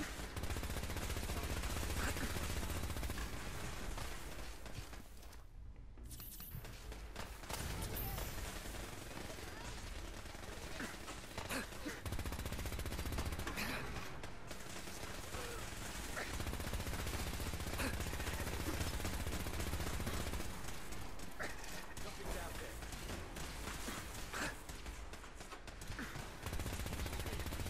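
A laser gun fires in rapid bursts.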